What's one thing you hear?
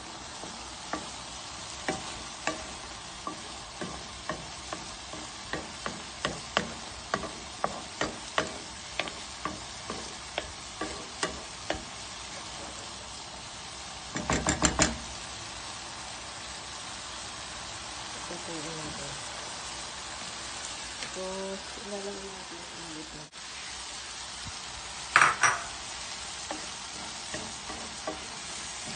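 Food sizzles and crackles in a hot pan.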